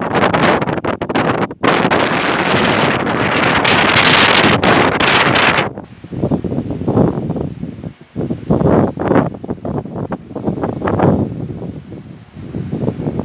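Strong wind buffets the microphone in loud, roaring gusts.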